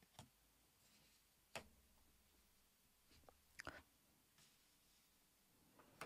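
Cards slide and tap softly on a table.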